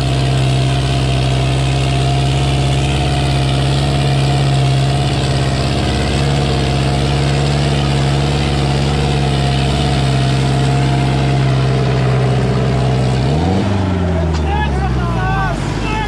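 A tractor engine roars loudly and steadily, then winds down.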